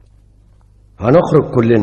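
A man speaks loudly and forcefully close by.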